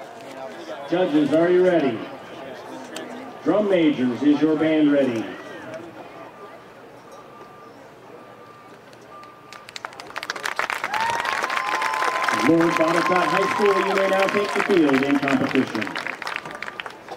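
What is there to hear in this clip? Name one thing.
A marching band plays brass chords outdoors.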